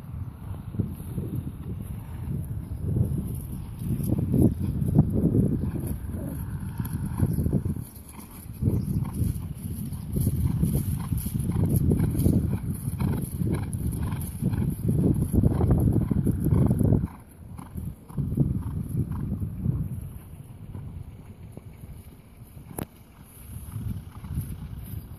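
A horse canters over grass with dull thudding hoofbeats.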